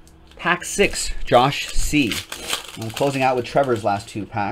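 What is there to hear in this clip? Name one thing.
A foil card pack tears open.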